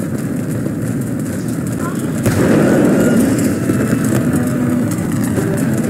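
Cannons fire with deep booming blasts.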